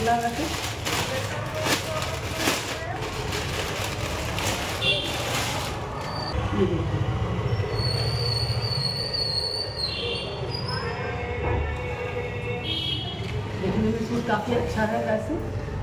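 A young woman talks cheerfully and close by.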